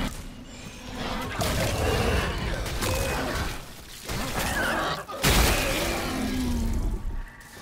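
A creature snarls and shrieks.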